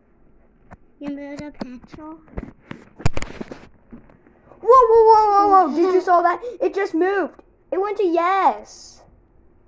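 A young child speaks close by with animation.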